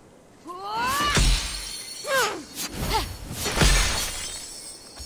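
A crystal shatters with a burst of glassy crashes.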